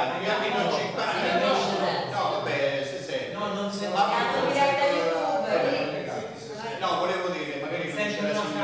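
A man speaks calmly and steadily into a microphone in a room with some echo.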